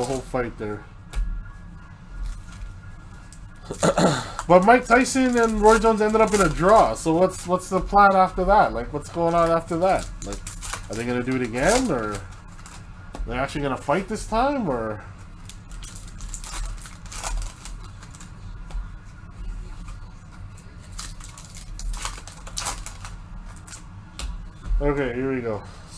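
A foil card wrapper crinkles and tears close by.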